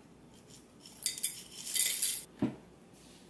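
Cereal pours and rattles into a glass cup.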